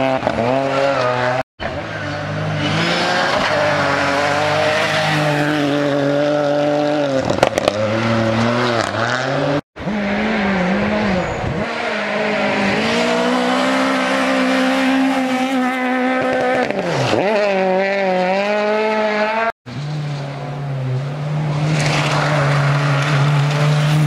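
A rally car engine roars loudly, revving up and down as the car speeds past.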